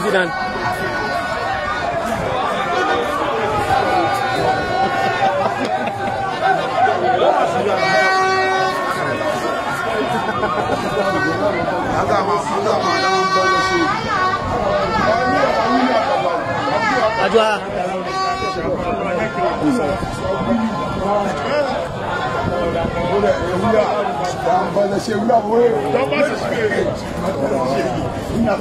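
A crowd of men and women talk and shout loudly all around, close by and outdoors.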